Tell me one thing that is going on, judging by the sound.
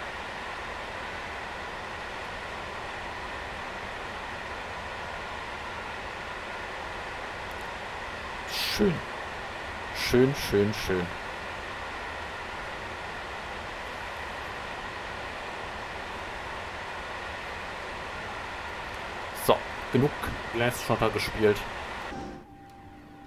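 A freight train rumbles steadily along the rails.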